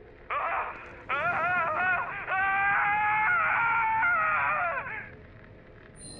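A man screams loudly in terror.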